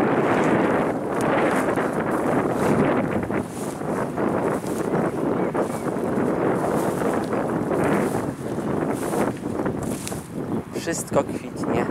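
Strong wind gusts and rustles through tall grass outdoors.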